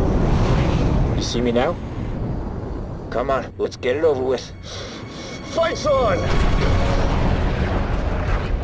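Fighter jets roar in flight.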